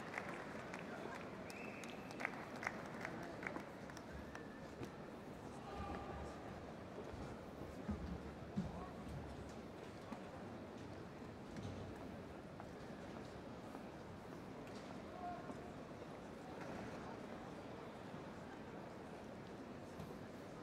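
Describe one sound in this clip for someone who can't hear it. A large indoor crowd murmurs and chatters, echoing in a big hall.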